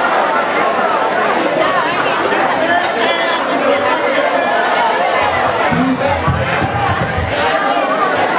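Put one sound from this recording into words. A live band plays loudly.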